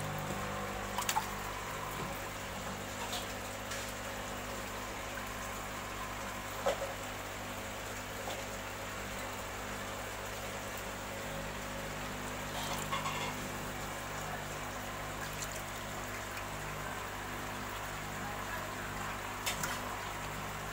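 Water splashes as a hand moves through a tank.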